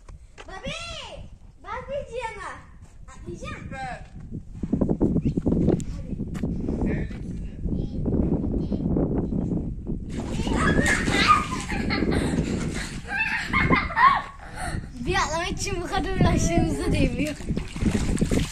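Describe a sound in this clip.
A young child squeals and laughs excitedly close by.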